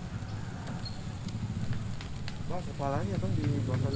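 A man fans a charcoal grill.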